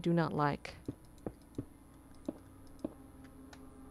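Stone blocks are set down with short, dull knocks.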